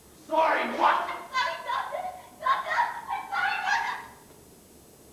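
A woman speaks loudly with animation in a large hall, heard from a distance.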